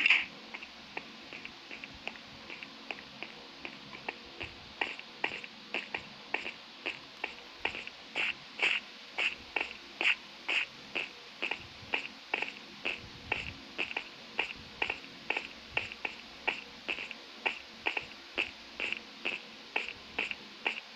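Footsteps tap quickly and evenly on stone.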